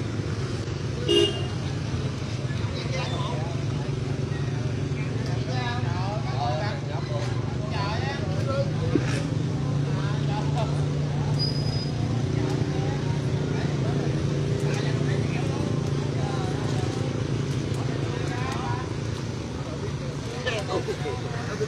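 Men talk and call out excitedly nearby.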